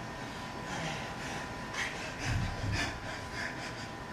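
Bare feet thump on a floor.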